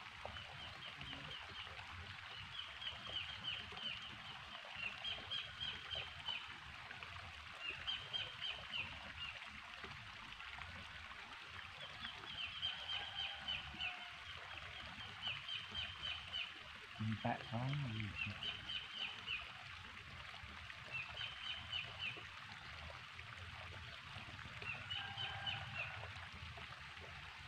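A stream trickles gently.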